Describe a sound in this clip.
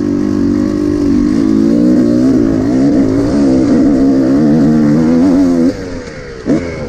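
A motorcycle engine revs loudly close by.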